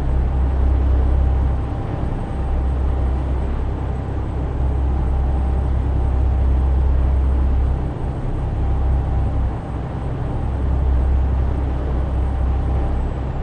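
Tyres roar on a motorway.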